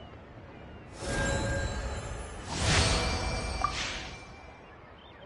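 A bright shimmering chime swells and fades as the puzzle is solved.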